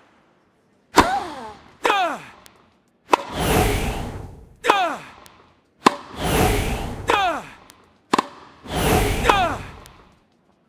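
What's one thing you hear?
A tennis ball is struck sharply with a racket, back and forth.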